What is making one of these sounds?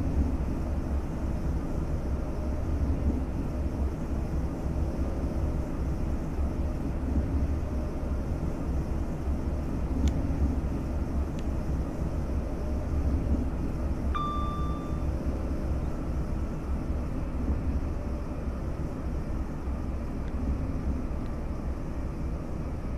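An electric train rumbles steadily along the track.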